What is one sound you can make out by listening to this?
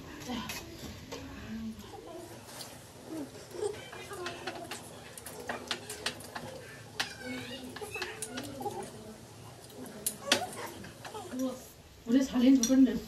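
Young women slurp and chew noodles close by.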